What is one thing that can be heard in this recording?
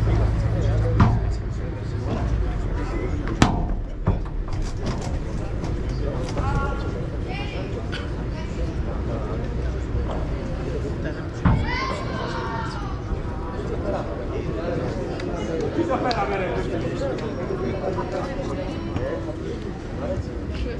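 Padel balls are struck with sharp pops by rackets.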